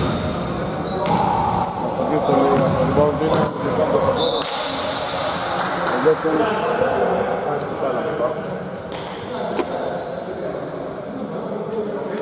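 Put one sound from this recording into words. Adult men call out to each other across an echoing hall.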